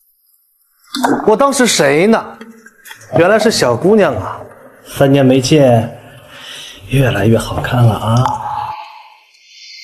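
A young man speaks warmly and with animation, close by.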